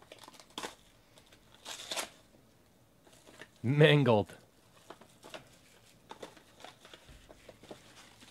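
Hands crinkle and tear open a plastic wrapper.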